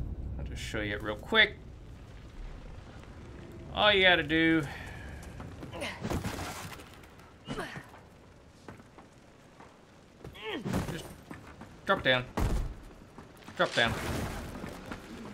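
A man speaks with animation, close to a microphone, in short bursts.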